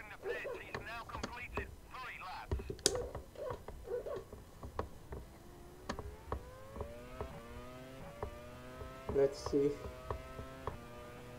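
A racing car engine whines, revving higher with each quick gear change.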